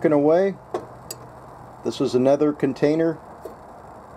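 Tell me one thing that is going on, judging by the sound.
A metal cup clinks as it is set down on a metal plate.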